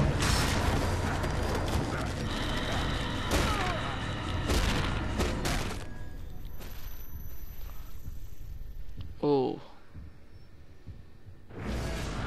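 A monster attacks a man with wet, tearing blows.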